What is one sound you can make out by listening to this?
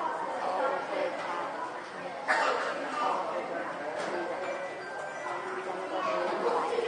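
People murmur and chat in a large echoing hall.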